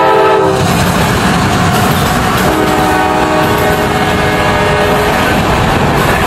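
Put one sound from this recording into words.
A locomotive engine roars as it passes.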